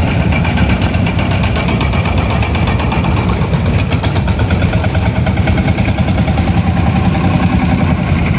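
An old engine chugs nearby with a steady, rapid beat.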